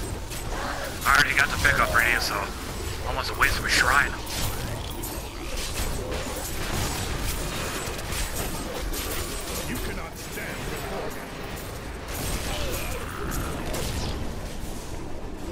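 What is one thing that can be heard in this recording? Fiery spells whoosh and crackle.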